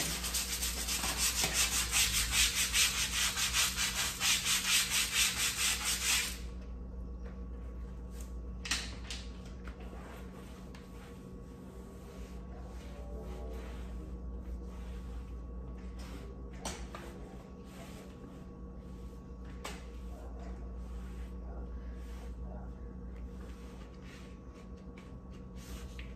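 A sponge scrubs a hard floor with quick, rhythmic rubbing strokes.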